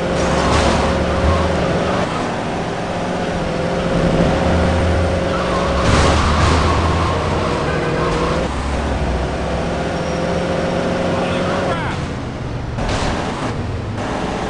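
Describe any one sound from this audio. A car engine hums steadily as it drives.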